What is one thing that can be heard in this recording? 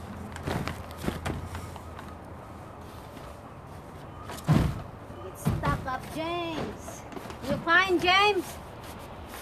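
A tarp crinkles and rustles under a person's hands and knees.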